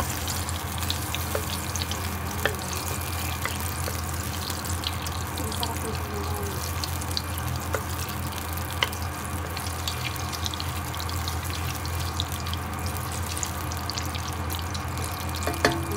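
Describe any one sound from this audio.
A wooden spatula scrapes against a metal pan.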